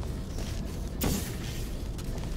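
A futuristic gun fires with a short electronic burst.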